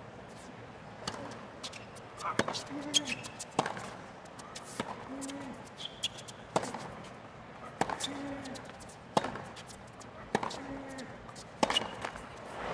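A tennis ball is struck back and forth with sharp pops of rackets.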